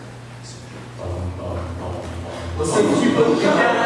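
A men's choir sings together in a large hall.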